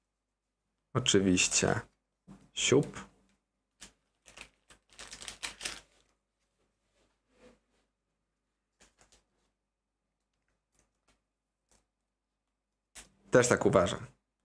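A plastic sleeve crinkles as a card slides into it.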